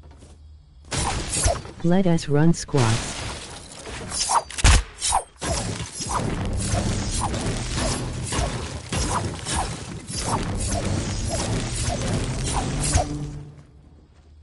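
Building pieces clatter and thud into place in a video game.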